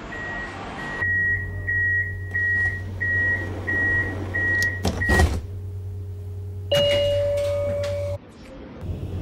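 A tram's electric motor hums steadily.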